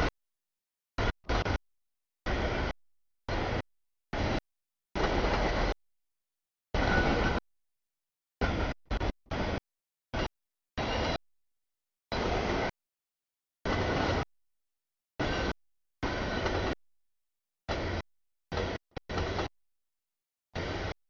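A freight train rumbles and clatters past, the sound cutting in and out.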